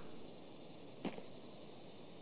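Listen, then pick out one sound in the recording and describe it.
A man falls to the ground with a soft thud.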